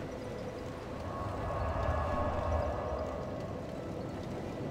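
A fire flares up with a roaring whoosh.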